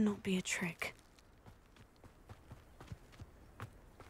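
Footsteps run quickly over soft grass.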